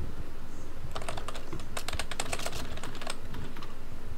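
A wooden drawer slides open with rattling clicks.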